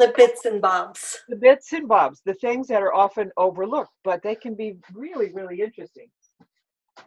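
An elderly woman talks with animation over an online call.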